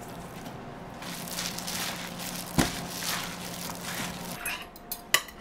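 A gloved hand tosses and squelches vegetables in a steel pot.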